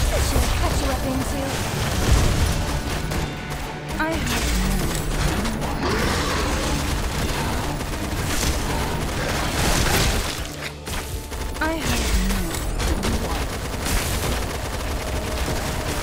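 Creatures growl and snarl.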